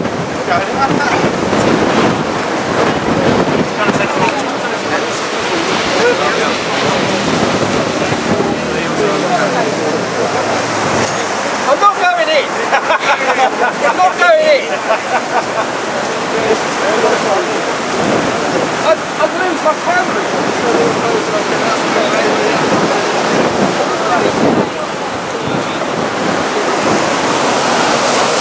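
Wind blows hard outdoors, buffeting the microphone.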